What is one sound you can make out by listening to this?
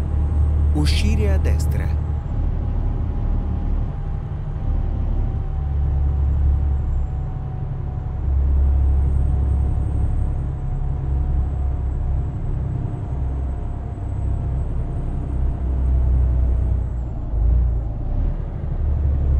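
A truck engine drones steadily with a low rumble.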